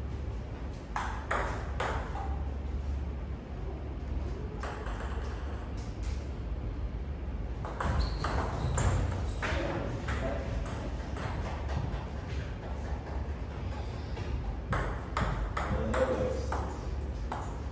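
A table tennis ball clicks back and forth on paddles and a table, echoing in a large room.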